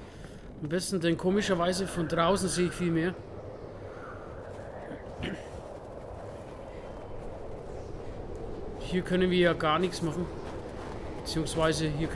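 Strong wind howls and gusts in a snowstorm.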